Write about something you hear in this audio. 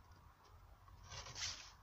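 Hands shift a wooden plank with a soft scrape.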